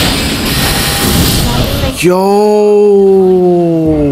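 A burst of magic shatters with a loud, shimmering crash.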